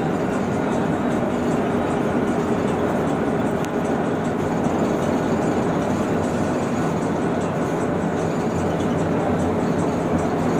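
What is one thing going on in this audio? Tyres roar on a smooth road at speed.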